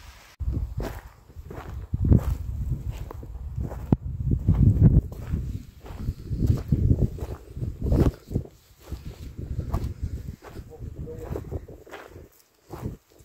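Wind gusts roughly across the microphone outdoors.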